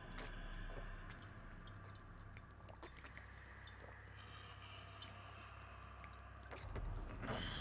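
A man gulps down a drink close to a microphone.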